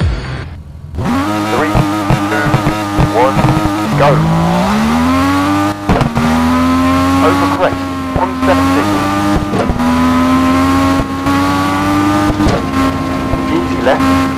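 A rally car engine revs hard and rises in pitch as the car speeds away.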